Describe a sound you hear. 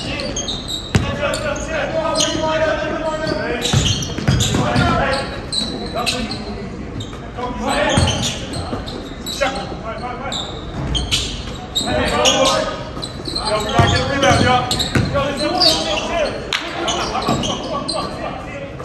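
Young men shout and call out to one another in an echoing gym.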